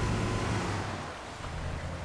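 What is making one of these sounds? Water splashes under vehicle tyres.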